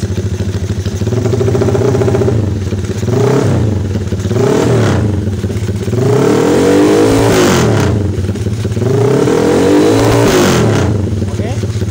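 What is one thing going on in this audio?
A motorcycle engine revs up and down several times.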